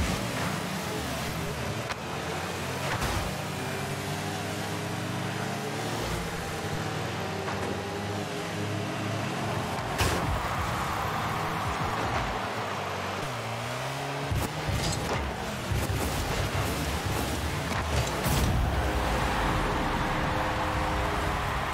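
A game car's engine hums and roars as it boosts.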